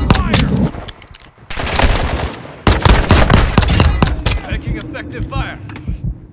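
Gunshots crack in rapid bursts, close by.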